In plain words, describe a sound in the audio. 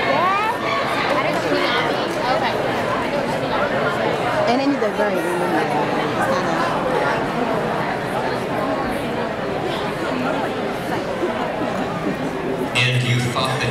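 An audience chatters and murmurs in a large hall.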